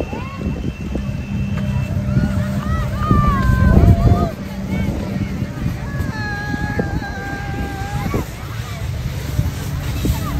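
A crowd of men and women chatter and call out nearby outdoors.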